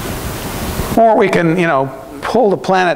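A man speaks into a microphone in a large room, as if giving a lecture.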